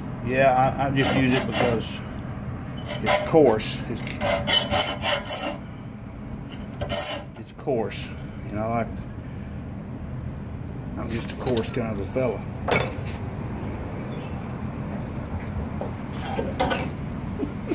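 Metal rods clink and scrape against a steel vise.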